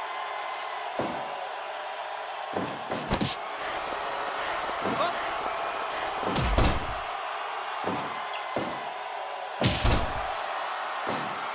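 Heavy blows thud against a wrestling mat again and again.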